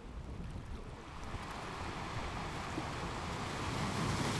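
Rushing water surges in and grows louder.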